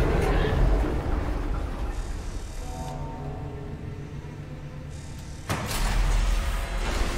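Heavy boots clank on a metal floor.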